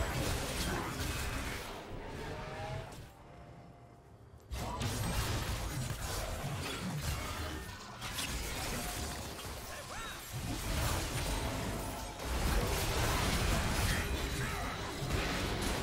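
Video game spell effects whoosh, crackle and thud during a fast battle.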